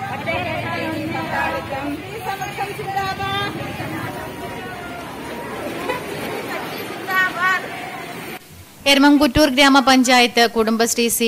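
A group of women chant slogans together outdoors.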